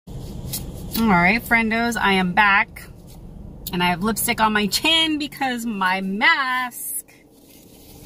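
A young woman speaks with animation, close to the microphone.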